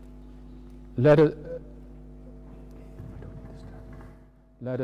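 A man speaks briefly into a microphone in a large echoing hall.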